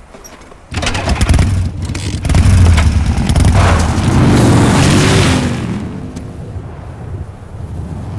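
A motorcycle engine roars and revs up.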